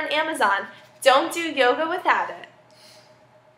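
A young woman speaks with animation close to a microphone.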